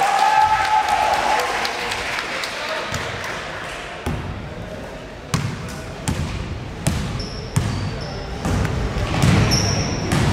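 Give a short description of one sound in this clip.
A basketball bounces on a floor in a large echoing hall.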